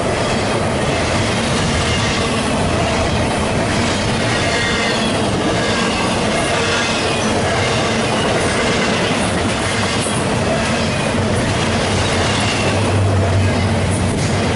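A long freight train rumbles past close by, its wheels clattering steadily on the rails.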